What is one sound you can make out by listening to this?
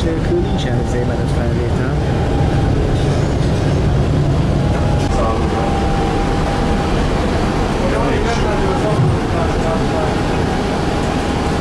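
A tram rumbles and rattles along its rails, heard from inside.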